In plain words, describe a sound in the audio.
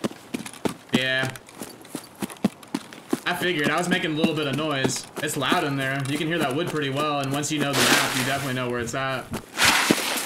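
A man talks into a microphone close by.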